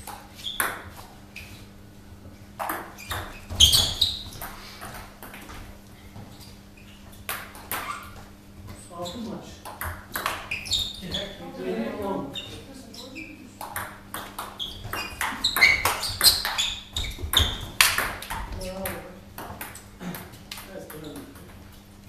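A ping pong ball clicks back and forth off paddles and a table.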